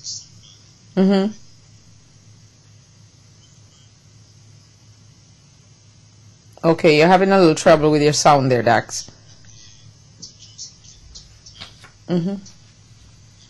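A woman speaks briefly and expressively into a close microphone.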